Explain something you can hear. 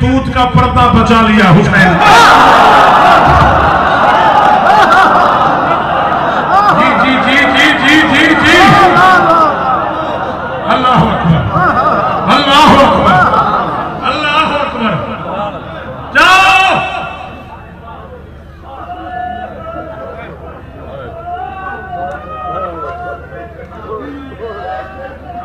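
A man shouts passionately into a microphone, heard over loudspeakers.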